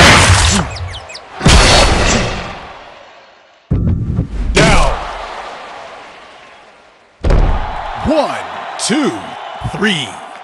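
Heavy punches land with booming thuds.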